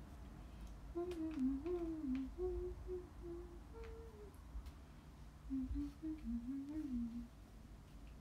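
A young woman hums a short tune close by.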